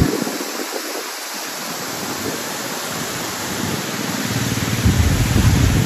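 A waterfall roars steadily outdoors.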